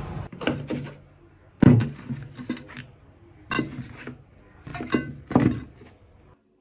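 Plastic bottles knock as they are set down in a box.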